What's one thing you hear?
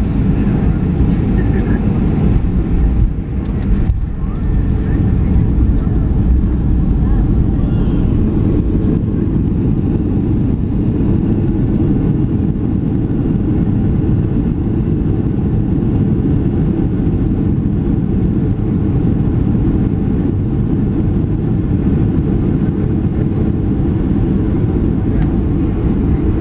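A jet airliner's turbofan engines roar, heard from inside the cabin.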